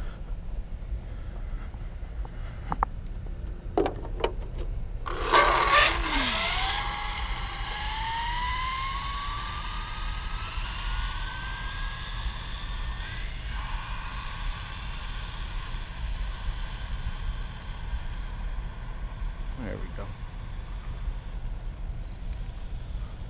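Wind rumbles steadily against the microphone.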